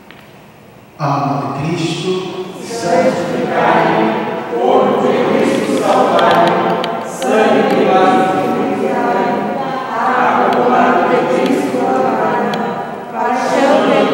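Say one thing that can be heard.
A man speaks steadily through a microphone and loudspeakers in a large echoing hall.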